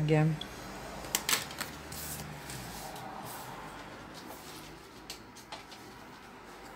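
Stiff card rustles and scrapes as it is handled.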